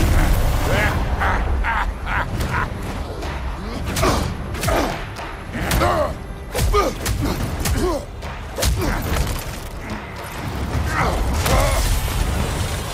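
A man grunts and roars with strain.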